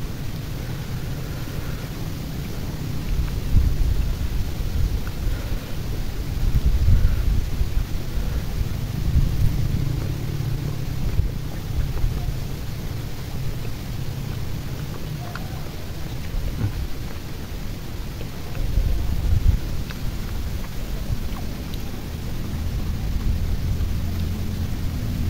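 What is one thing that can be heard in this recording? Fingers squish and pick up sticky rice.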